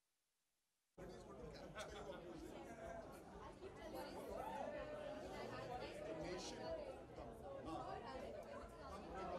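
A crowd chatters and calls out nearby.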